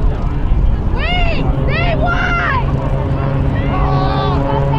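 A crowd of spectators shouts and cheers outdoors.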